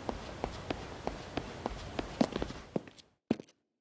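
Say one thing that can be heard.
Footsteps walk steadily across a hard floor.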